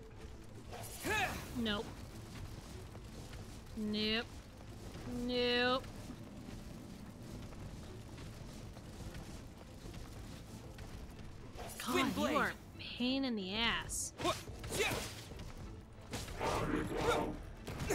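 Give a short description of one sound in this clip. Sword swings whoosh sharply in quick bursts.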